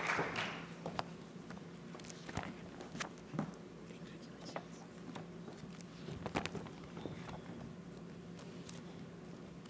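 Footsteps tap across a wooden stage.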